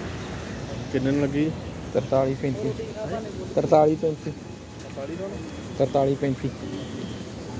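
A man talks loudly close by.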